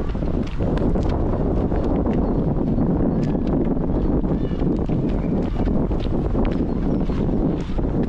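A river flows steadily nearby.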